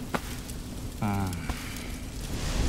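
An elderly man speaks in a low voice.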